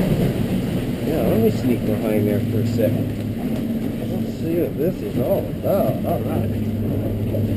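A middle-aged man talks cheerfully close by.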